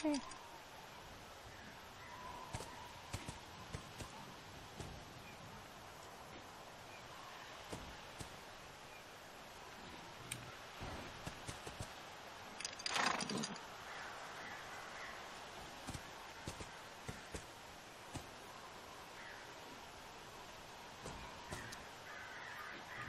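A horse's hooves thud and shuffle on soft ground.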